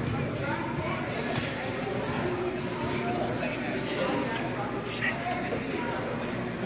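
A crowd of children and adults chatter and call out in a large echoing hall.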